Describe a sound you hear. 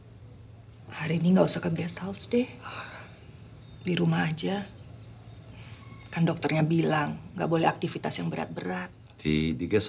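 A woman speaks sharply and close by.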